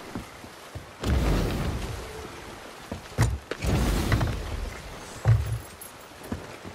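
Waves splash against a wooden ship's hull.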